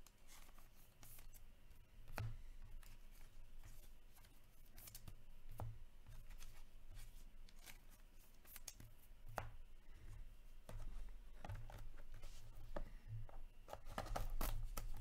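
Trading cards shuffle and slide against each other in hands.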